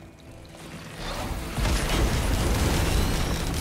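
Energy blasts crackle and hiss in a fight.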